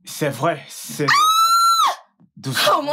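A young woman cries out in a high voice.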